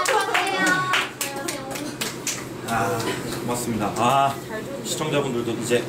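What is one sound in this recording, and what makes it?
Young men and women chat and laugh around a table.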